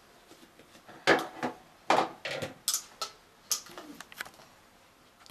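Plastic parts clatter and knock as they are handled.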